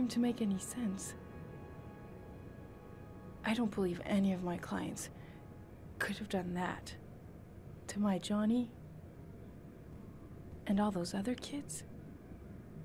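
A middle-aged woman speaks in an upset, pleading voice.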